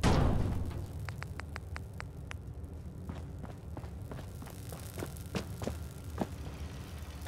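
Short electronic clicks tick in quick succession.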